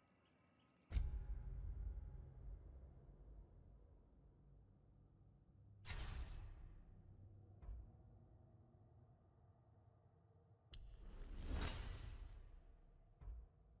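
Game menu sounds whoosh and chime as menus open and change.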